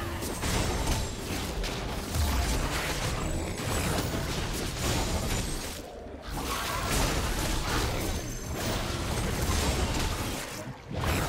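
Spell effects crackle and whoosh in a game fight.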